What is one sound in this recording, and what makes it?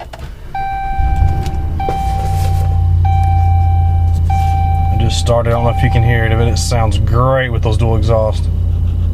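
An engine starts and idles with a low, steady rumble.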